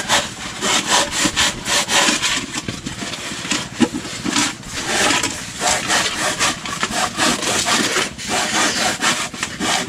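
A knife scrapes and shaves a foam container with a rasping sound.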